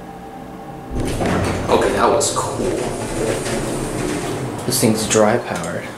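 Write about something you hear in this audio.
Elevator doors rumble and slide open.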